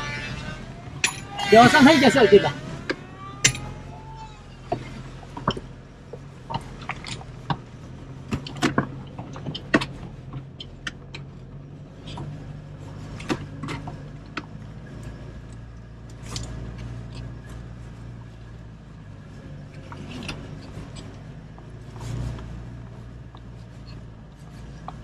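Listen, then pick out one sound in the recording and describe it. A car knocks and rattles sharply over bumps in a rough track.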